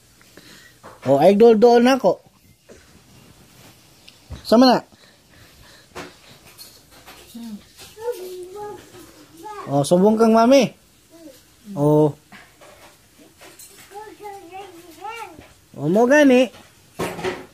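A toddler squeals loudly and happily close by.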